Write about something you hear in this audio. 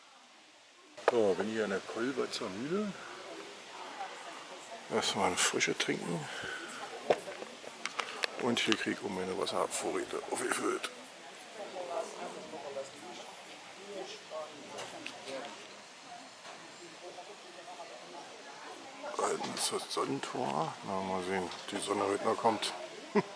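A middle-aged man talks calmly, close to the microphone, outdoors.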